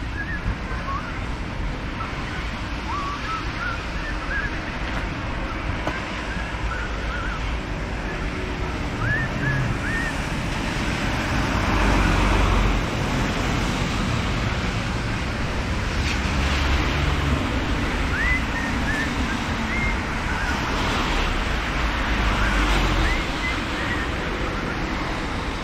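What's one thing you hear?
Cars hiss past on a wet road.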